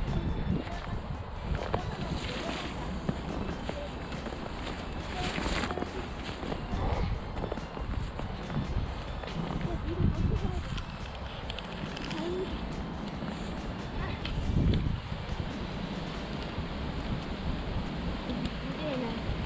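Footsteps crunch through snow close by.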